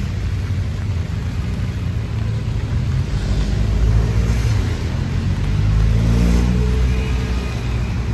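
A motorbike passes close by on a wet road.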